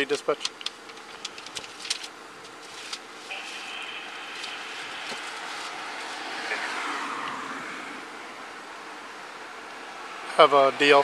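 A man speaks briefly, close by and loud.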